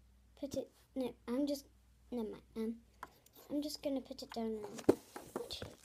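A young girl talks close to a handheld phone microphone.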